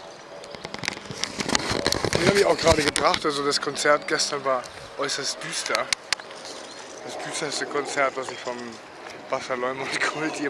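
A middle-aged man talks close to a microphone, outdoors in wind.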